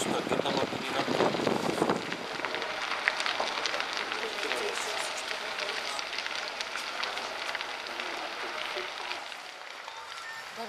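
A large fire roars and crackles loudly.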